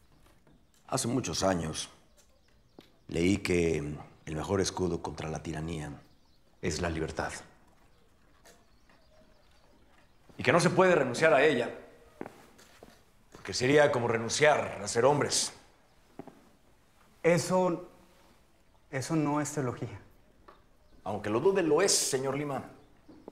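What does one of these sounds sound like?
An older man speaks firmly, pausing between phrases.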